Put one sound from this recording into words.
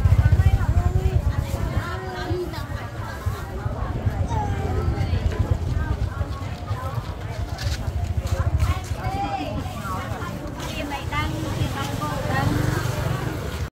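Women talk and chatter nearby, outdoors.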